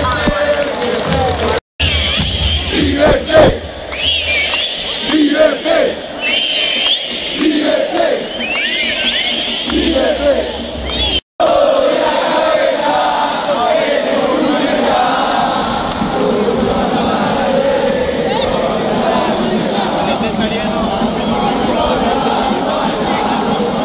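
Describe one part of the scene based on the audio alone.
A huge stadium crowd of men sings and chants loudly all around, echoing in the open air.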